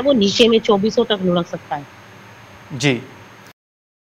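A woman speaks over a phone line with animation.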